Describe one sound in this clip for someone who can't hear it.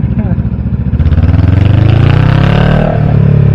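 A motorcycle engine revs up and rises in pitch.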